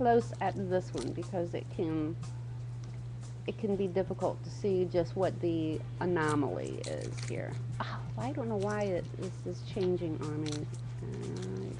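A young woman talks calmly and closely into a microphone.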